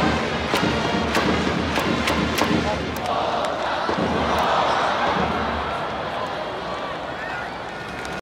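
A large crowd cheers and chants in a big echoing stadium.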